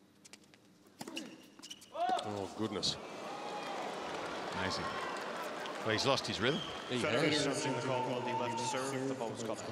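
A large crowd cheers and applauds in a big arena.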